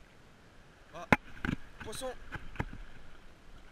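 A fishing reel clicks and rattles as it is handled close by.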